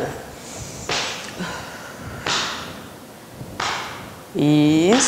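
A woman breathes out forcefully several times.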